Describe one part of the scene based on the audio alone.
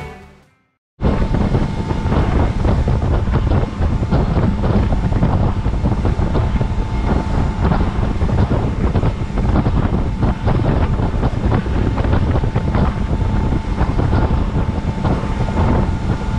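A boat hull slaps and splashes over choppy water.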